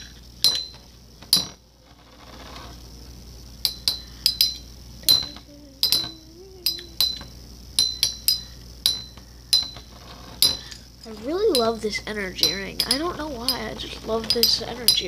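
Spinning tops clack sharply against each other again and again.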